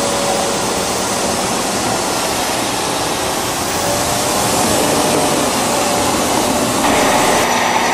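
Steel tank tracks clank and squeal as they climb onto a trailer.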